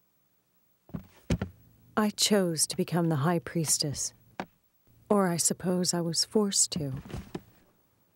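A young woman speaks softly and sadly.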